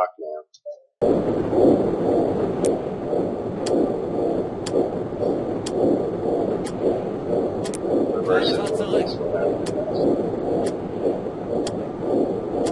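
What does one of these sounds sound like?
A stopwatch ticks steadily.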